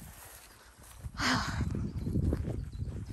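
A dog's paws rustle through long grass.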